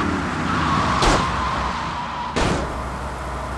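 A car crashes with a sharp thud.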